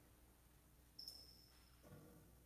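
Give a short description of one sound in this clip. A metal cup clinks against a hard surface.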